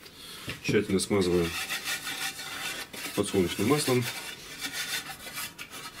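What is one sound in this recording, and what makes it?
A metal baking tin clanks as it is picked up and moved.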